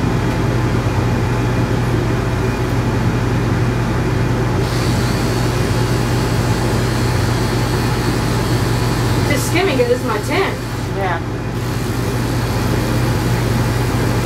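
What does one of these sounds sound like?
Electric clippers buzz steadily up close.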